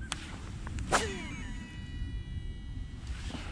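A fishing reel whirs as line pays out.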